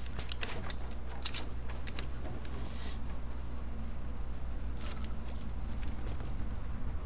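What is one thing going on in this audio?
Footsteps thud and patter on a hard surface.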